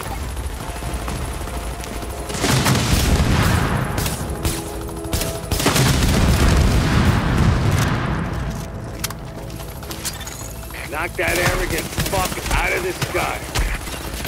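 A helicopter's rotor thumps and roars overhead.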